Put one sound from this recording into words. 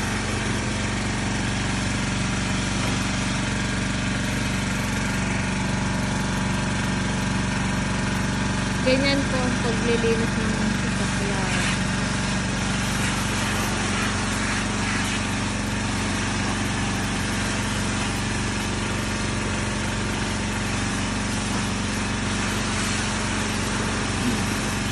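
A jet of water hisses as it sprays against a car.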